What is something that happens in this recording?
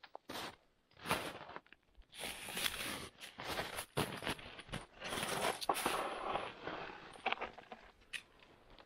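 A hand saw cuts through a dead branch with quick rasping strokes.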